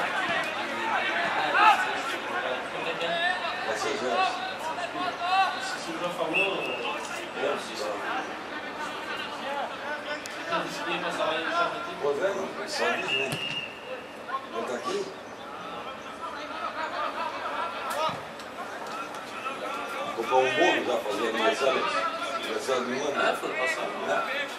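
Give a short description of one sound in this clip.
Men shout to one another across an open outdoor field.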